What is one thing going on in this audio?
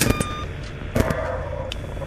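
Electronic static crackles in a short burst.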